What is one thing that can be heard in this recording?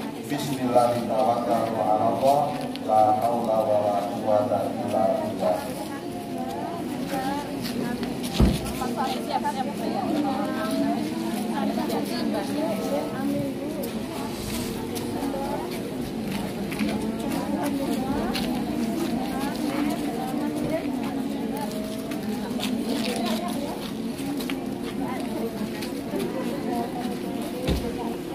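A crowd of women chatter and greet one another close by.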